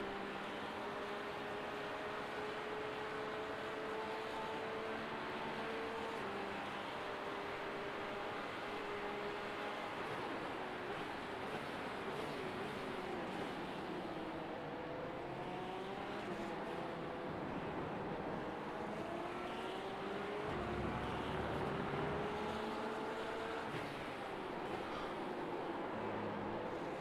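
A racing car engine whines steadily, rising and falling in pitch as it shifts gears.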